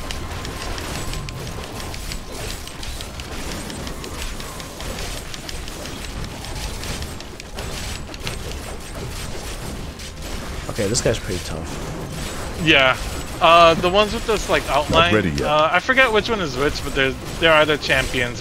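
Swords clash and magic blasts burst in a busy fight.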